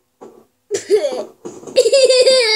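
A young boy laughs excitedly close by.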